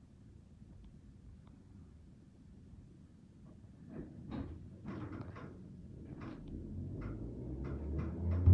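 A train rumbles along the tracks, growing louder.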